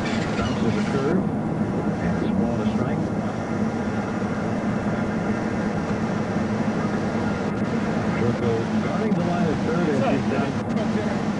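A man talks calmly at a distance, outdoors.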